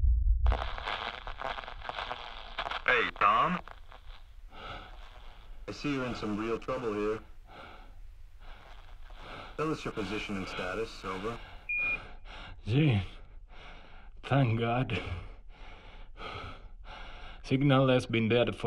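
A man speaks calmly over a crackling radio.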